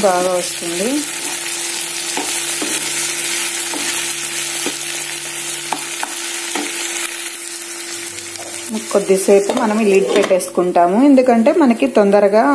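Food sizzles steadily in a hot frying pan.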